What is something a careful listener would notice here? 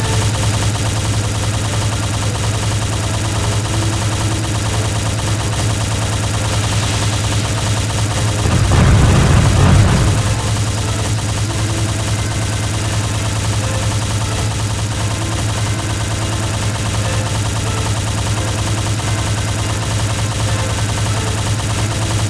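Heavy mechanical footsteps thud steadily.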